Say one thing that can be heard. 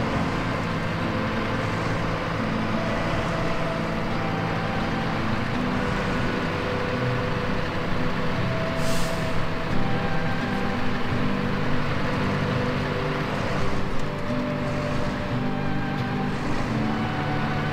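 A heavy truck engine rumbles steadily as it crawls through snow.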